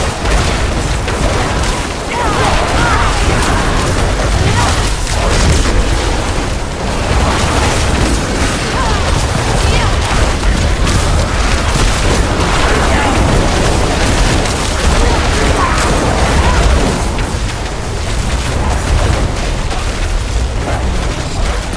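Magic spells crackle and explode in a fast, busy fight.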